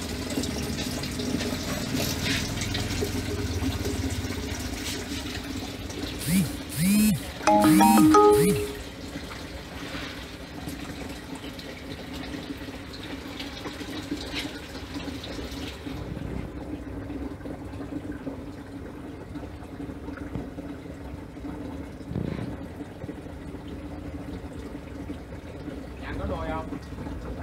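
An aquarium filter hums steadily.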